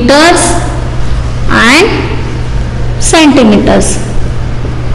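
A woman speaks slowly and clearly, with pauses between phrases.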